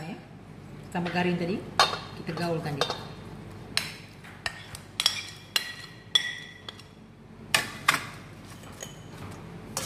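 A metal spoon clinks and scrapes against a metal bowl.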